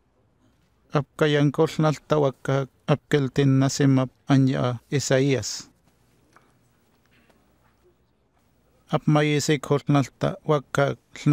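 A man reads aloud in a calm, steady voice.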